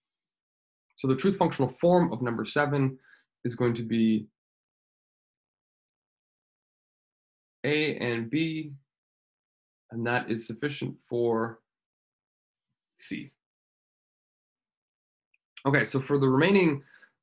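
A man speaks calmly and explains, close to a microphone, with pauses.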